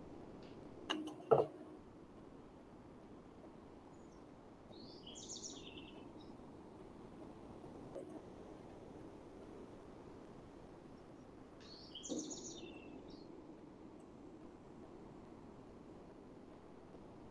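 A man speaks calmly and quietly through an online call.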